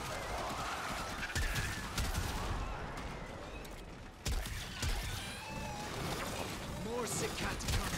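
Metal blades clash and swish.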